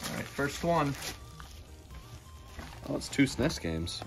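Plastic wrapping crinkles as a young man unwraps it.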